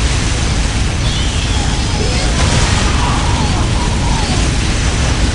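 Flamethrowers roar.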